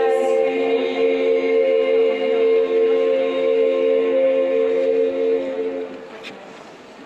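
A women's choir sings sustained harmonies outdoors.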